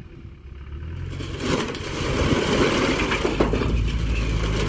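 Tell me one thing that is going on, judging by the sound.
Loose stones slide and tumble, clattering loudly.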